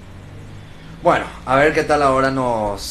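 A young man speaks close to a microphone, drawing out his words expressively.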